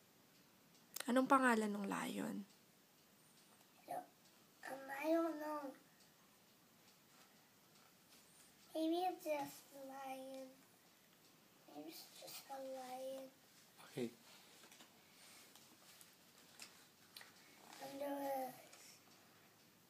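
A young boy reads aloud slowly, in short bursts, close by.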